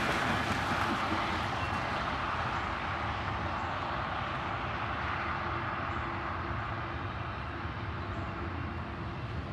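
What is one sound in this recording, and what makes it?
A freight train rumbles and clatters steadily past nearby.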